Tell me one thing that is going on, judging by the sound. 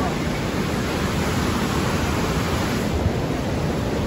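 River rapids rush and roar loudly below.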